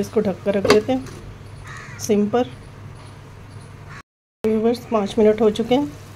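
A glass lid clinks onto a pan.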